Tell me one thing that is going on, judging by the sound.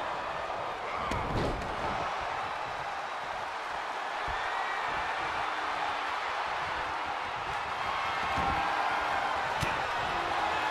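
Heavy thuds of bodies slam onto a wrestling ring mat.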